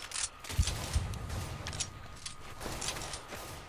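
A knife's metal clinks as it is flipped in a hand.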